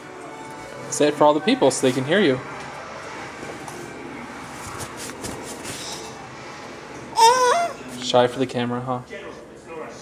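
A baby squeals and babbles happily close by.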